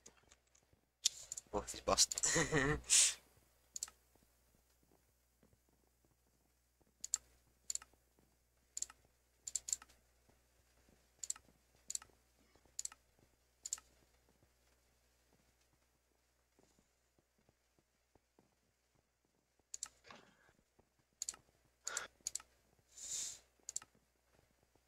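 Short clicks of menu buttons sound one after another.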